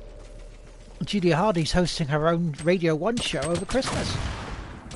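A man speaks with animation, close to a headset microphone.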